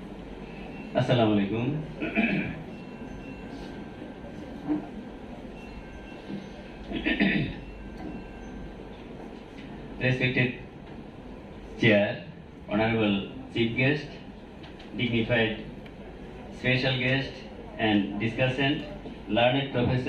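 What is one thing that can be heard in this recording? A man speaks into a microphone through loudspeakers, in pauses, in a large echoing hall.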